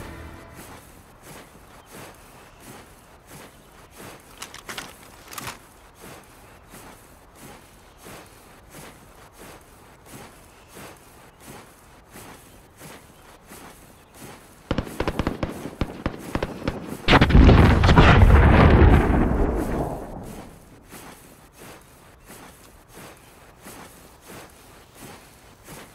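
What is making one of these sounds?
Footsteps crunch steadily over dry grass and dirt.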